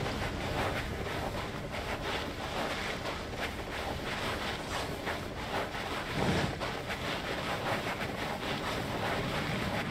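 Quick footsteps patter on soft ground.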